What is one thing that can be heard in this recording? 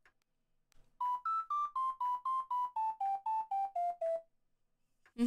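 A short electronic tune of beeping notes steps downward.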